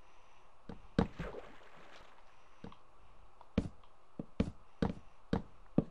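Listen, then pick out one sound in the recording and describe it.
Footsteps thump on a wooden ladder in a steady climbing rhythm.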